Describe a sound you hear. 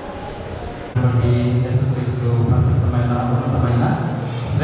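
A man speaks loudly into a microphone, heard through loudspeakers.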